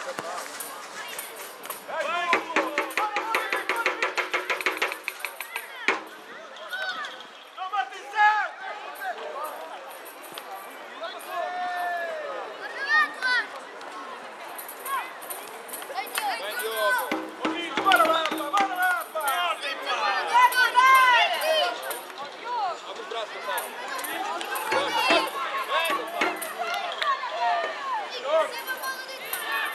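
Children shout and call out to each other across an open field.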